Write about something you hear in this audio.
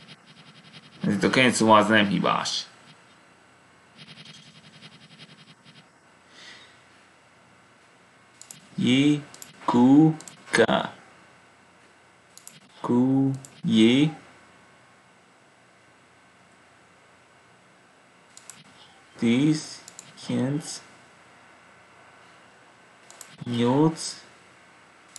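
A man speaks close to a microphone in short bursts, with pauses between.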